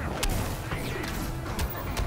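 A magical energy blast whooshes and crackles.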